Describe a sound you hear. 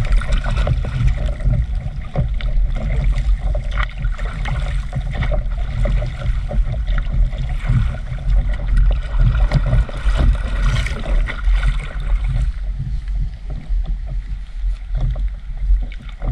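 Water splashes and rushes along the hull of a moving boat.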